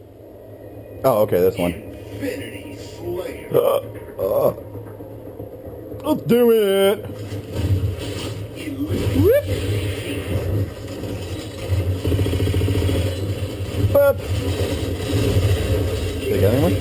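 Video game sounds play loudly through a television speaker.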